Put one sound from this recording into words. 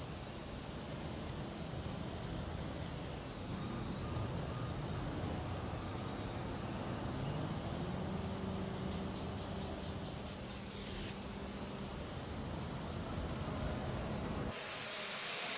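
A drone's rotors whir steadily.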